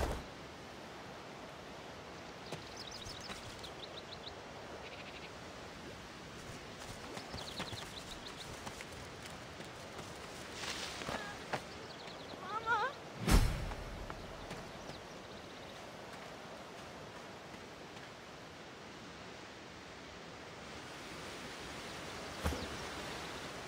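Footsteps crunch softly on grass and dirt.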